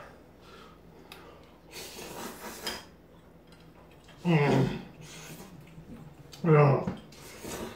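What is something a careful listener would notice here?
A man slurps noodles noisily up close.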